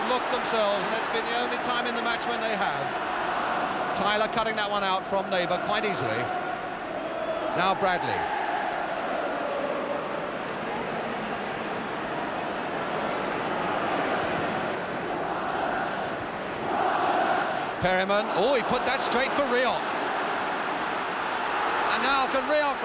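A large crowd roars and murmurs steadily in a big open stadium.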